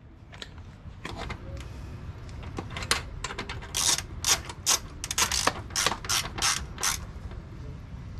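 A ratchet clicks rapidly.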